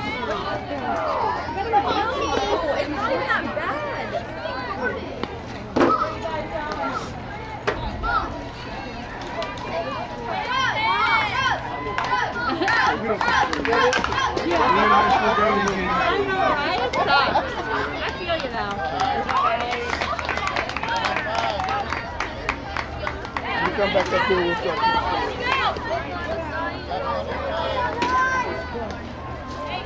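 Young girls and adults shout and cheer outdoors.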